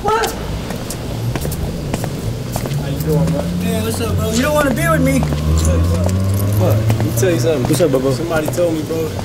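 A man speaks casually with a deep voice close by.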